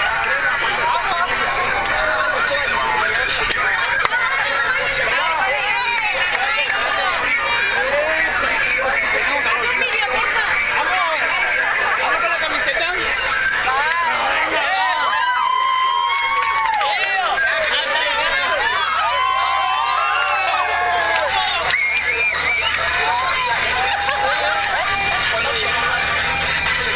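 A crowd of young men and women sing and shout loudly together in a small space.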